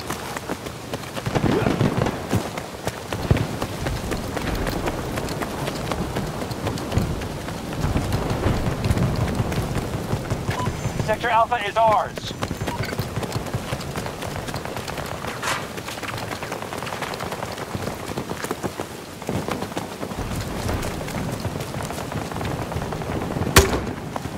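Rain patters steadily all around.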